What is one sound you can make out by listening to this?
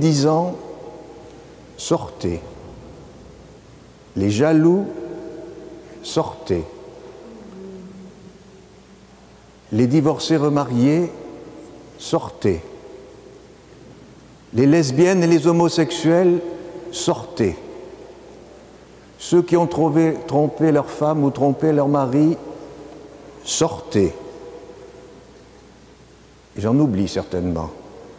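An elderly man speaks calmly and deliberately into a microphone, his voice echoing in a large reverberant hall.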